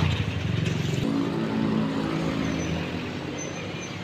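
A van's engine hums as it drives closer.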